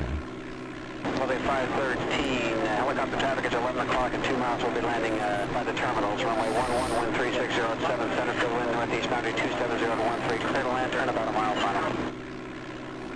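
A middle-aged man talks calmly into a headset microphone.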